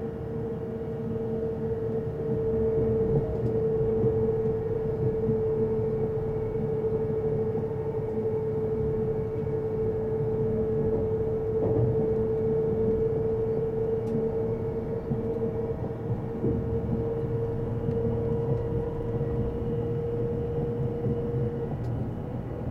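A motor whines at a steady pitch, then stops.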